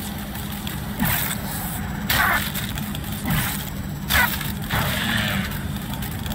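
A small robot's metal legs tap and skitter.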